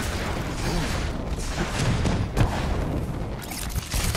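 Jet thrusters roar during flight.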